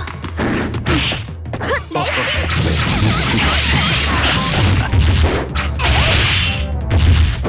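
Punches and kicks land with sharp hits in quick succession.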